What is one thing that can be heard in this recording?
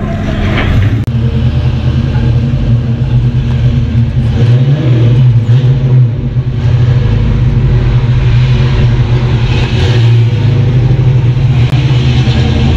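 A car engine idles with a deep, steady rumble nearby.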